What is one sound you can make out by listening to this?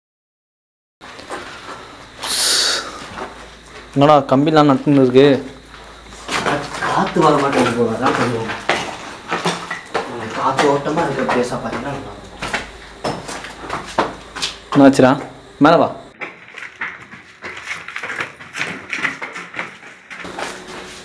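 Footsteps scuff on concrete stairs.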